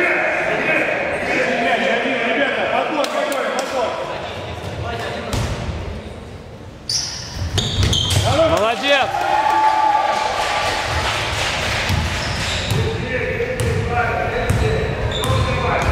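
Basketball players' sneakers squeak on a hard floor in a large echoing hall.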